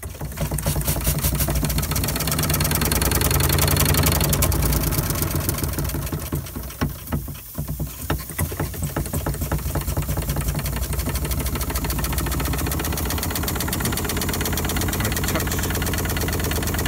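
A steam engine chuffs and clanks rapidly and steadily close by.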